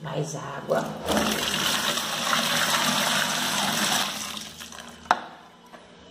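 Water pours and splashes into a bin.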